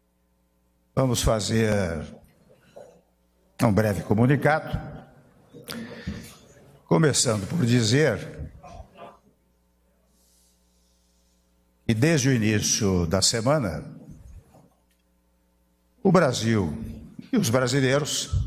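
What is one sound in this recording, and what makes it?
An elderly man speaks slowly and deliberately into a microphone, with long pauses.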